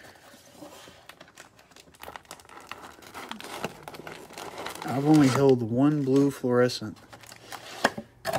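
Foil card packs crinkle and rustle as they are pulled out.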